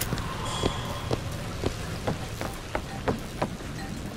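Glass cracks and shatters nearby.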